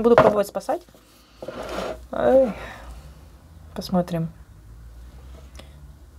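A plastic tub crinkles and rustles as it is handled.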